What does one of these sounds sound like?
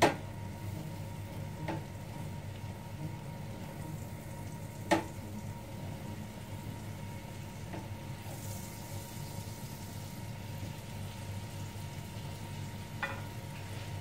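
A spatula stirs and scrapes food in a frying pan.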